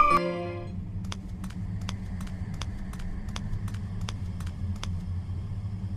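Light footsteps tap quickly on a hard floor.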